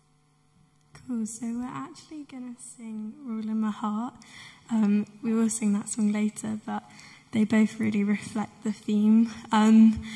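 A young woman speaks calmly into a microphone, heard through loudspeakers in a large echoing hall.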